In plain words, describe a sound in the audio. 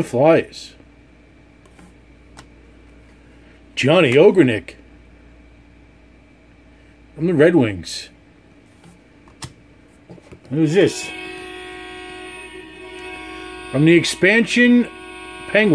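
Trading cards rustle and slide as hands flip through them.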